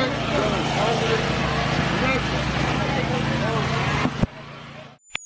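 A crowd talks and murmurs outdoors nearby.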